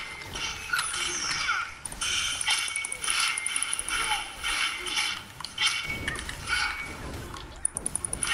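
Blades strike again and again in a fast fight.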